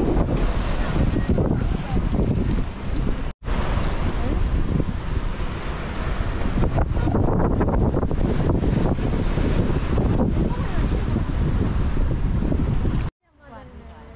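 Strong wind roars and buffets outdoors.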